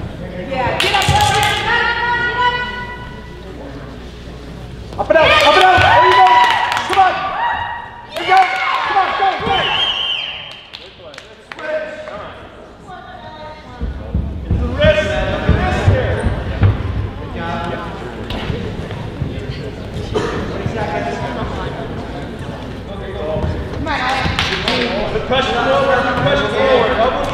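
A man shouts in a large echoing hall.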